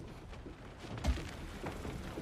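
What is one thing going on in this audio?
A heavy thud sounds as a figure lands from a jump.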